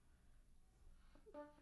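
A woodwind instrument begins to play a note close by.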